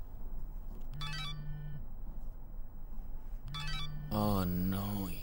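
A mobile phone buzzes and chimes nearby.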